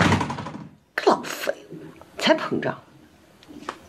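A young woman answers curtly nearby.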